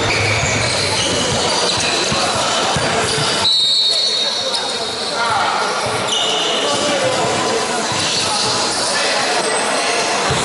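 Basketball shoes squeak on a hard floor in a large echoing hall.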